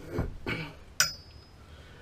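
A cloth rubs against a metal tube.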